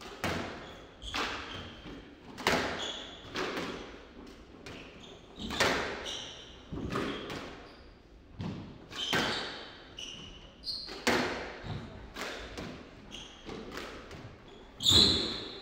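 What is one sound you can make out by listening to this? Sneakers squeak sharply on the wooden floor.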